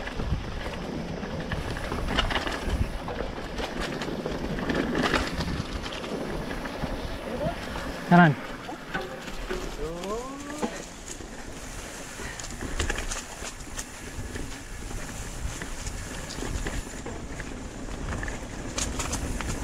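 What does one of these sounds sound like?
Wind rushes past a microphone outdoors.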